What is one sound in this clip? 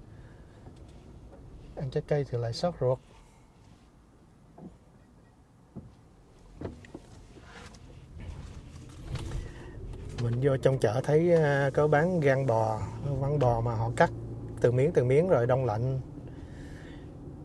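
A car engine hums quietly while driving.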